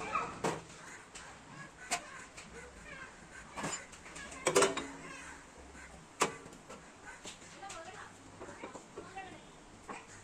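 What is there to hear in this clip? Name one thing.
A lever handle on a metal press clanks as it is pulled.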